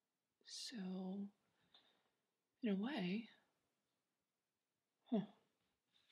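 A young woman speaks quietly and earnestly, close by.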